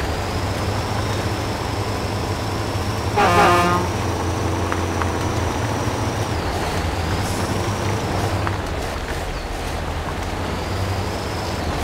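Truck tyres squelch through mud.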